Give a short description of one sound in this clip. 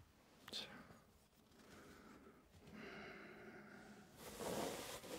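A young man whispers softly close to a microphone.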